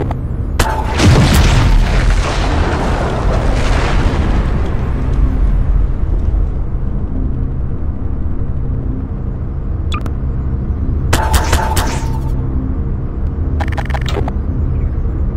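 A toy-like gun fires short electric zaps.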